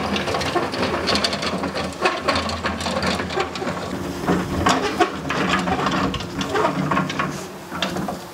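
A cement mixer rattles as it is wheeled over rough ground.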